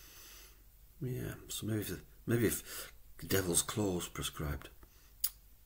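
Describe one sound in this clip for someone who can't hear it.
An older man speaks calmly and close to a microphone.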